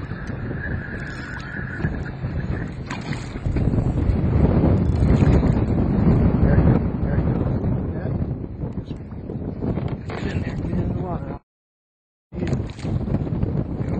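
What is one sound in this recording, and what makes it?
Water laps and splashes against a boat.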